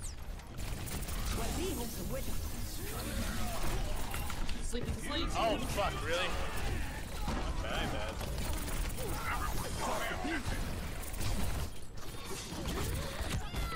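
Pistols fire rapid bursts of energy shots.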